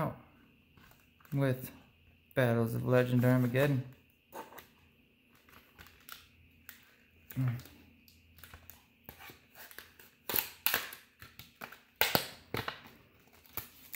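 Stiff plastic packaging crinkles and clicks as it is handled.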